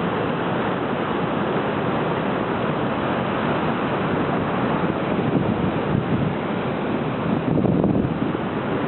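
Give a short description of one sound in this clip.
Ocean waves crash and wash over rocks.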